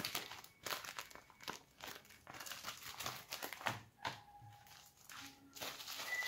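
Paper crinkles and rustles as it is unfolded.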